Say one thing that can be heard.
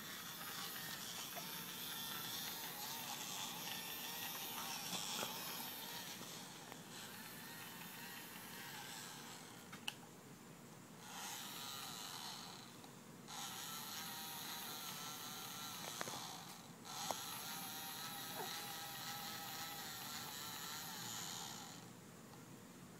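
A small toy motor whirs in bursts, starting and stopping.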